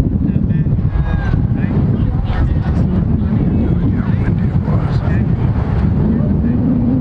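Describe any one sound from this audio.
A crowd of children and adults chatter outdoors at a distance.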